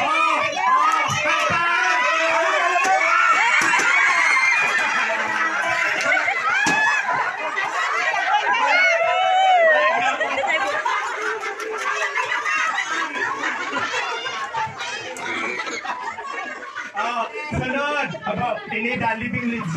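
A crowd of people talk, shout and laugh loudly nearby.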